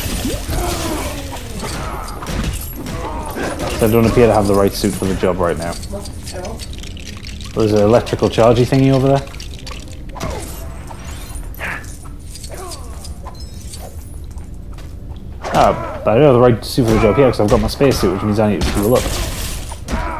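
Cartoonish punches and crashes from a video game brawl ring out.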